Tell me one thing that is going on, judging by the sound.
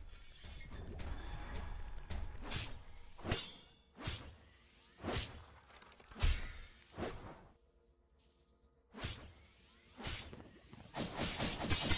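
A large creature growls and thumps as it lunges.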